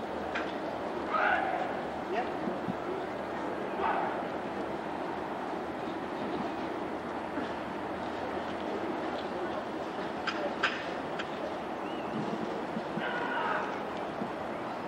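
Men talk quietly at a distance.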